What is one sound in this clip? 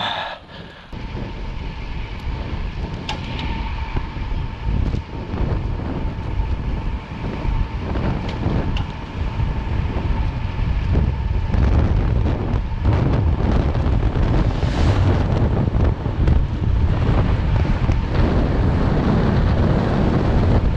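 Wind rushes loudly past, growing stronger as the pace picks up.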